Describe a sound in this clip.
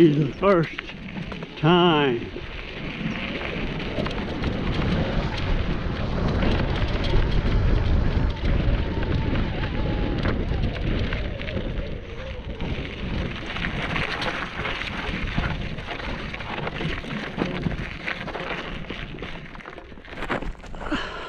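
Bicycle tyres crunch and rattle over a dry dirt trail.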